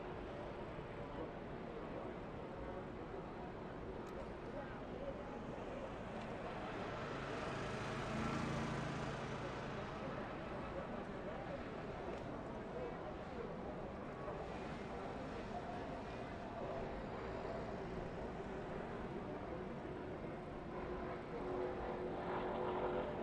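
Race truck engines drone steadily at a distance.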